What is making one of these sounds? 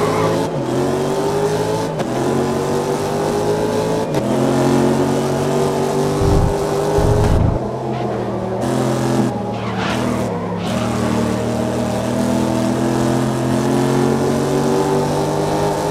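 A racing car engine roars loudly, rising in pitch and dropping briefly at each gear change.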